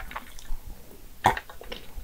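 A young woman drinks with gulping sounds close to a microphone.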